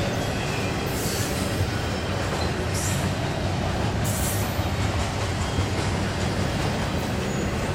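A freight train rumbles past, its wheels clattering and squealing on the rails.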